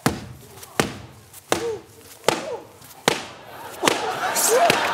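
A sledgehammer bangs repeatedly against a wall.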